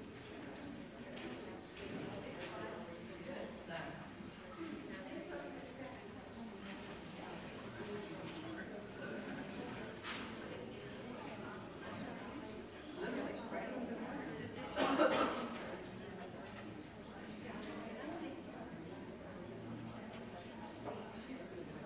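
Men and women chatter softly in a large echoing hall.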